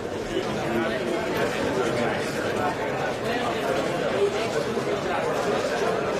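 A middle-aged man talks animatedly nearby.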